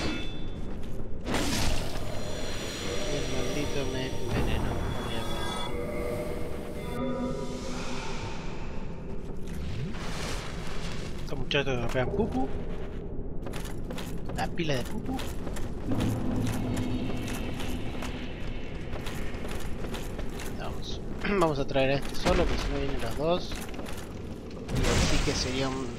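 A sword strikes a body with a heavy slash.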